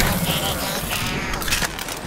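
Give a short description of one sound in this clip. Electricity crackles and sparks.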